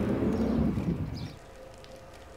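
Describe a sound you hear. A vehicle hums as it drives along a road.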